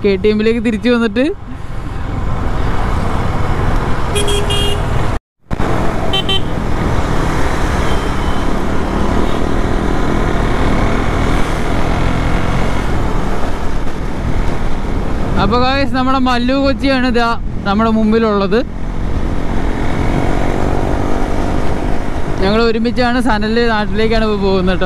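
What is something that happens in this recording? A motorcycle engine hums steadily close by while riding.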